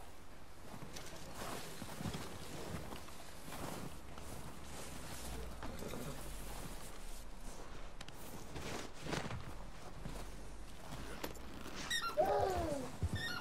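Footsteps crunch through deep snow.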